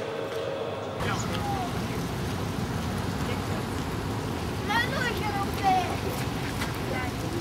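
Water splashes steadily from a fountain outdoors.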